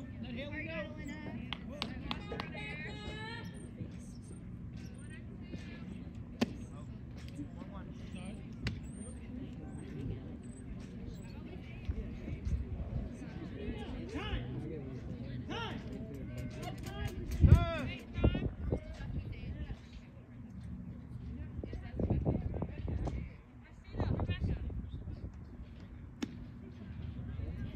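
Young players call out from across an open field.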